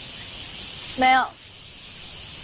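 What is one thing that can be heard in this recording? A young woman answers briefly.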